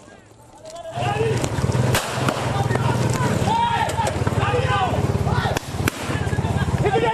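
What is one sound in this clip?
Motorcycle engines run nearby.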